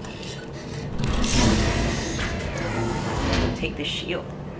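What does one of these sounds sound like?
A metal chest opens with a hiss and clank.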